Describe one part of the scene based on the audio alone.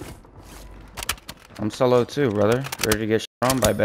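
A gun clicks and rattles as it is handled.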